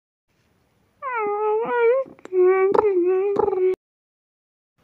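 A small creature chatters in squeaky, high-pitched cries.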